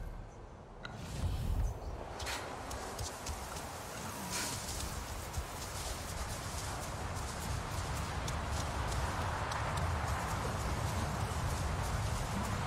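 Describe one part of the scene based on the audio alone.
Wind blows steadily across open grassland.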